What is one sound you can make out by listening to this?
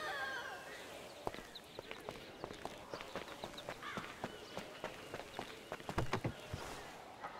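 A car door clunks open.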